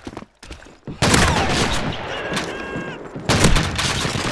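A pump-action shotgun fires loud blasts.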